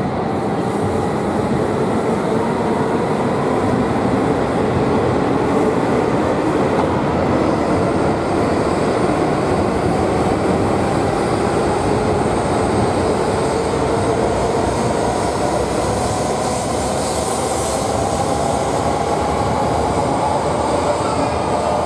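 A high-speed train rushes past at close range with a loud, steady roar and rising whine.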